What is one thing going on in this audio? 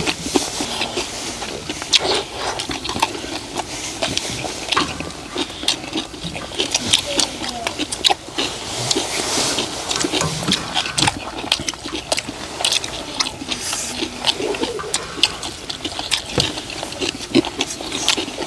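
Men chew and slurp food loudly close by.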